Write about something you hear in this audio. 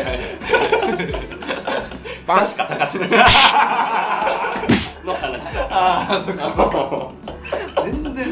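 A second young man laughs heartily, close by.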